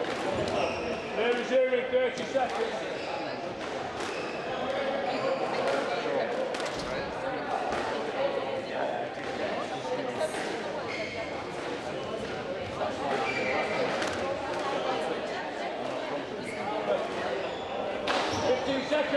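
A squash ball smacks against a racquet and echoes off the walls of a hard-walled court.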